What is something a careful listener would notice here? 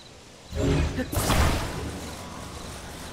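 A bright magical whoosh bursts out and fades.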